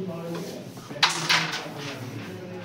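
Carrom pieces clatter as hands sweep them together.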